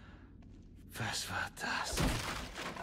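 A wooden crate is struck hard and splinters.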